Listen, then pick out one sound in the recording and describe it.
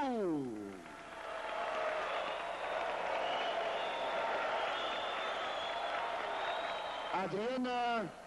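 A large crowd cheers and applauds in a big hall.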